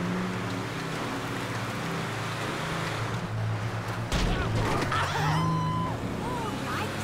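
A heavy truck engine rumbles steadily as the truck drives.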